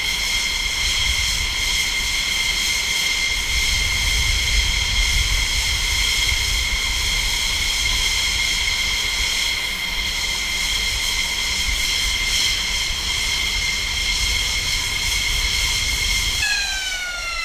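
An F-16 jet engine whines at idle.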